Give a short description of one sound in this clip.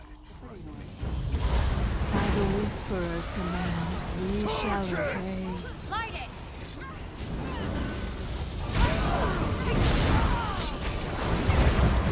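Blows and magic blasts crash and thud.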